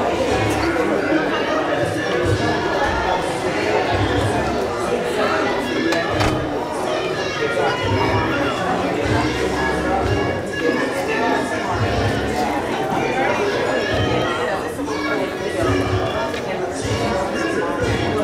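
A keyboard plays music with a steady beat in a large echoing hall.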